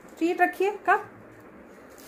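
A small dog yaps several times in high pitched bursts.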